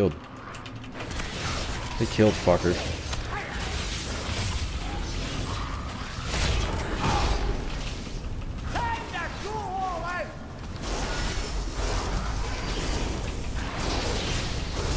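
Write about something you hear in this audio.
Spell blasts and weapon hits crash and whoosh in a game battle.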